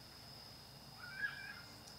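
A horn sounds briefly at a distance.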